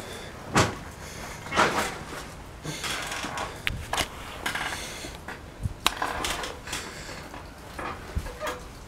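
A bicycle is wheeled along, rattling and clicking over paving.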